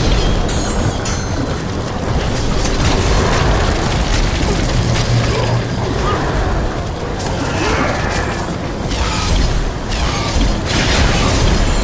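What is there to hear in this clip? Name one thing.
Magical energy blasts roar and crackle.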